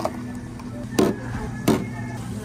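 A glass knocks down onto a hard counter.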